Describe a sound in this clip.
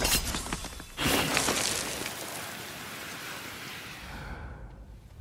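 A smoke bomb bursts with a loud, fading hiss.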